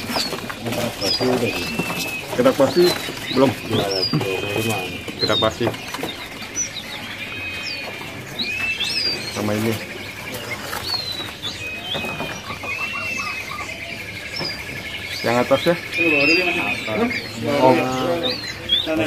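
Many small caged birds chirp and twitter close by.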